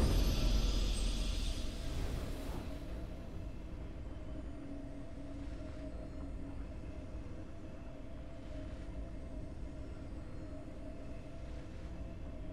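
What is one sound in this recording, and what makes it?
Triumphant music plays softly with held notes.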